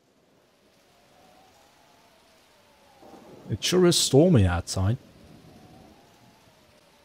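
Heavy rain pours down in a storm.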